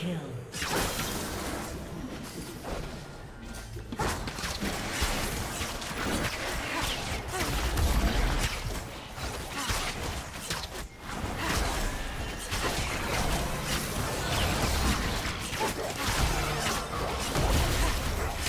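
Magical blasts and strikes crackle and burst.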